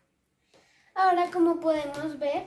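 A child speaks loudly and excitedly close by.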